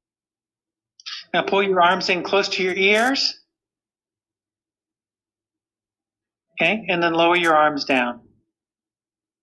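A man speaks calmly over an online call, in short phrases.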